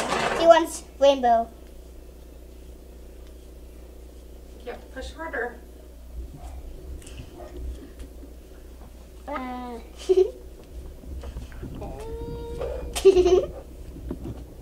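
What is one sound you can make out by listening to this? A young girl speaks softly up close in a high voice.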